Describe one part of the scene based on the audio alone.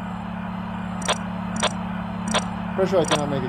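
Short electronic beeps sound a few times.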